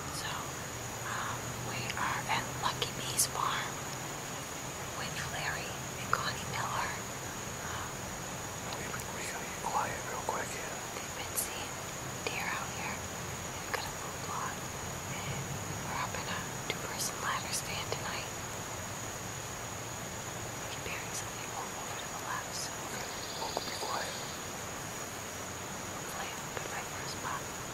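A young woman speaks quietly and calmly close by, outdoors.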